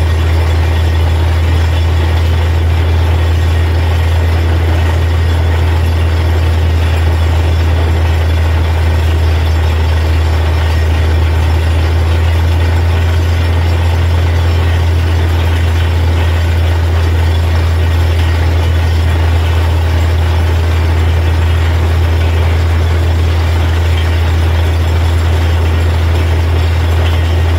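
Muddy water splashes and gushes out.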